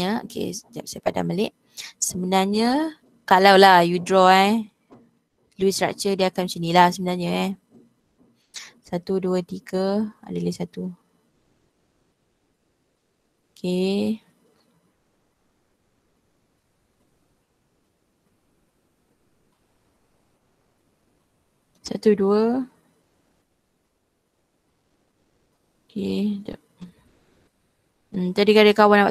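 A young woman speaks calmly over an online call, explaining at a steady pace with long pauses.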